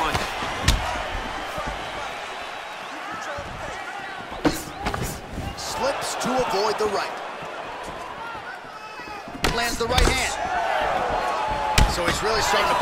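Punches land with sharp thuds.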